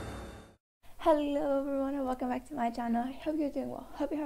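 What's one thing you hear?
A young woman speaks with animation into a microphone, in a high, sing-song voice.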